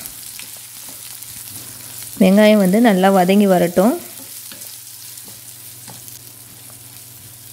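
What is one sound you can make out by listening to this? Onions sizzle softly in a frying pan.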